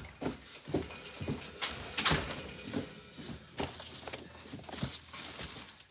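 Plastic wrapping crinkles up close.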